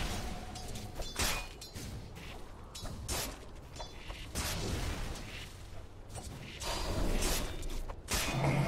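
Magic spells whoosh and burst in a fast video game battle.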